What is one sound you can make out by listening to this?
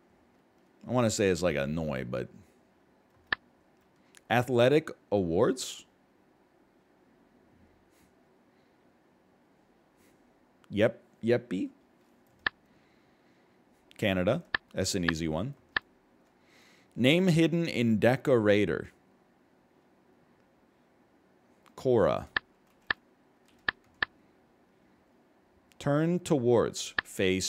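A man speaks calmly and thoughtfully into a close microphone, in short bursts with pauses.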